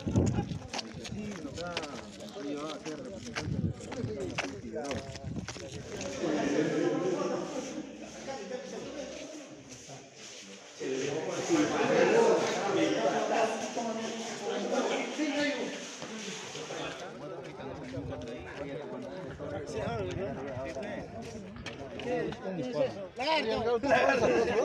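A man speaks close to the microphone, calmly.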